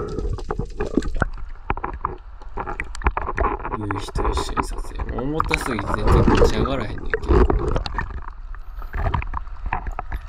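Water sloshes and splashes close by.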